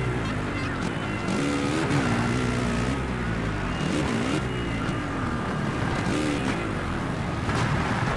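A dirt bike engine revs up and down throughout.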